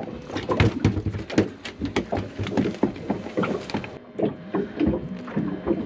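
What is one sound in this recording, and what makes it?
A fish flaps and slaps against a plastic deck.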